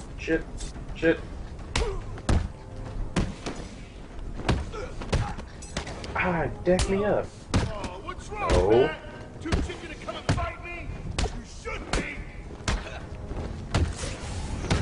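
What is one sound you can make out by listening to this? Punches and kicks land with sharp thuds in a brawl.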